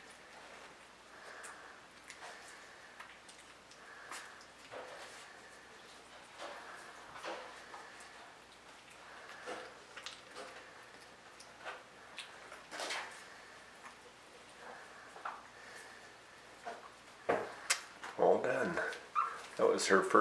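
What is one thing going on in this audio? A puppy whimpers and squeaks softly up close.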